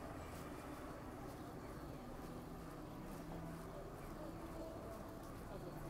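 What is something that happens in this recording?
A low murmur of city traffic and crowd goes on steadily.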